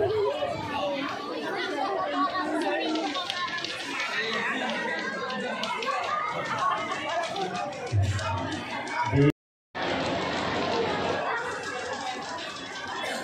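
A large crowd chatters and murmurs outdoors.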